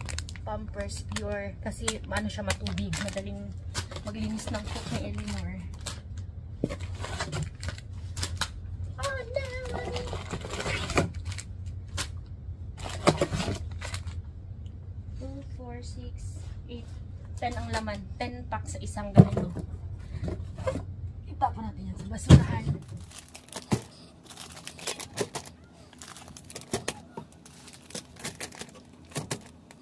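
Plastic packs crinkle and rustle as they are handled.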